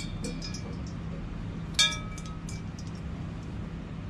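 Water splashes softly in a metal bowl.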